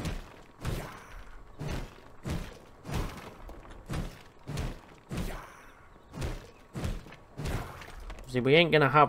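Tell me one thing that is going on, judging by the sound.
Blades clash and strike in a quick fight.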